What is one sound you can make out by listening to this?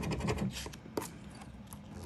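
A plastic scraper scratches against a card.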